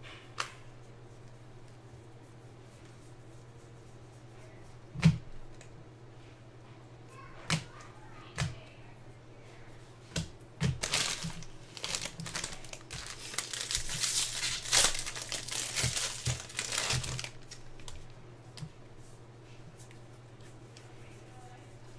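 Trading cards rustle and slide as they are flipped through.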